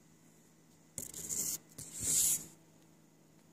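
A hand rubs and bumps right against the microphone.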